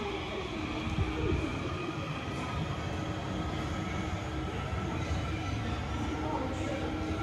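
A train rumbles as it pulls away from the platform.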